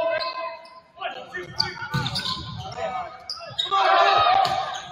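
A crowd cheers and shouts in the stands.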